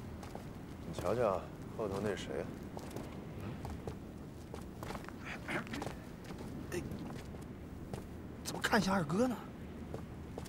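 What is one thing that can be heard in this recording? A man speaks in a calm, low voice, close by.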